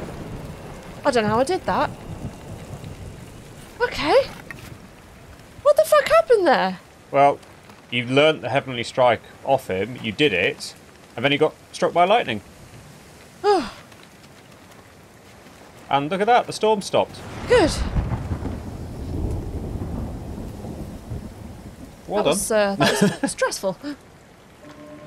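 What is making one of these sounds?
A woman talks and laughs with animation, close to a microphone.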